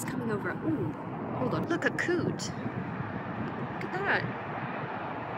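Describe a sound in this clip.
A young man talks casually, close by, outdoors in wind.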